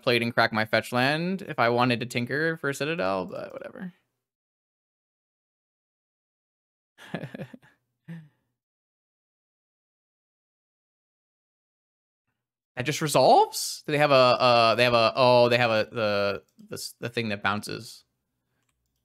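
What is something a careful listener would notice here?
A young man talks with animation into a close microphone, pausing now and then.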